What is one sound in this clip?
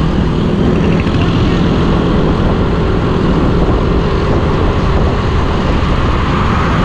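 Wind roars loudly over a moving motorcycle.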